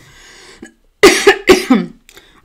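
A woman coughs.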